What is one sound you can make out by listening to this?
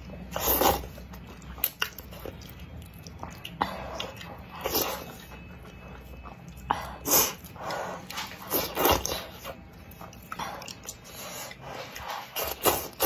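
A young woman chews food wetly.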